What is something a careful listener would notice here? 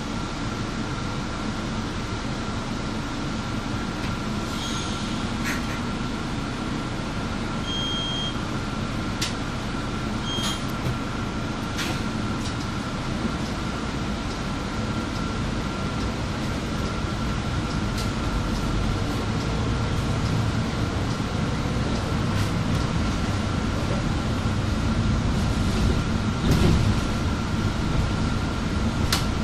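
A bus rattles and clatters as it drives.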